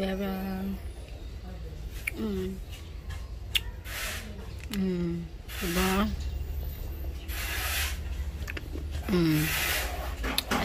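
A young woman speaks calmly and close up.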